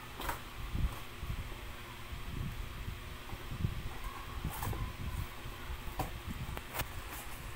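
Cardboard rustles and scrapes under hands handling a box.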